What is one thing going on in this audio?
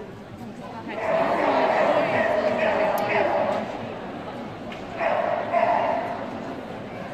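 A large crowd cheers and claps in an echoing arena.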